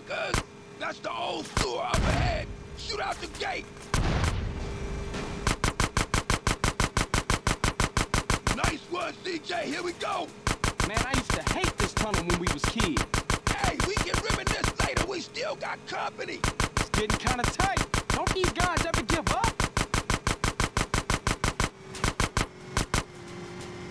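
A submachine gun fires in rapid bursts.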